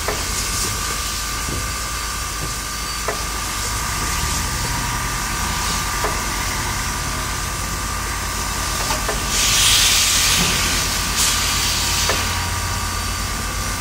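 Heavy train wheels clank over rails.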